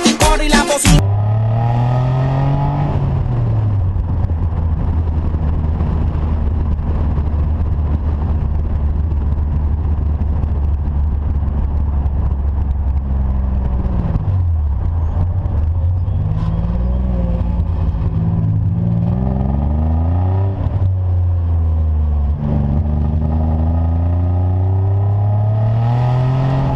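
A car engine hums and its pitch rises and falls as the car speeds up and shifts gears.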